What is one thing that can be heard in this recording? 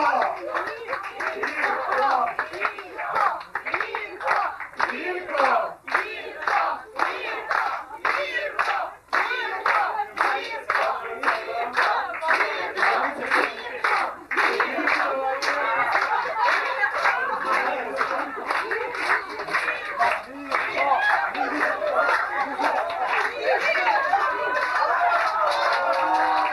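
Men and women chatter and call out loudly nearby.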